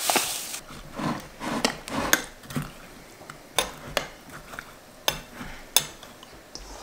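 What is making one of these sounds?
A metal spoon clinks against the inside of a glass jar.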